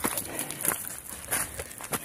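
A dog's paws patter on gravel.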